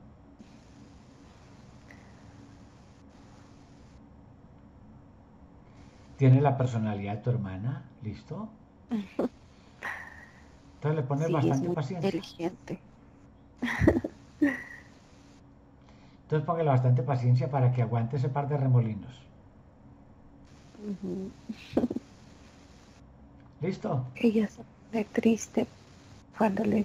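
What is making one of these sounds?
A middle-aged man laughs over an online call.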